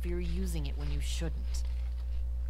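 A woman speaks tensely, close by.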